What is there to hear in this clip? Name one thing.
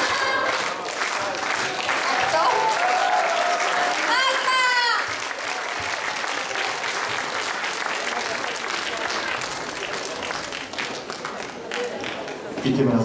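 A crowd cheers and applauds in a large hall.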